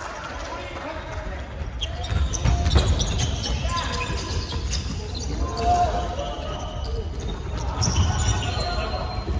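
Sneakers squeak sharply on a hardwood floor in a large echoing hall.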